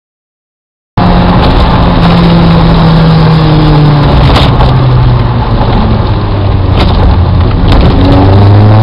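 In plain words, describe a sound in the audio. A car engine hums and changes pitch as the car speeds up and shifts gears.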